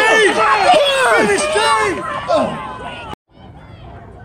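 Spectators shout and cheer loudly close by.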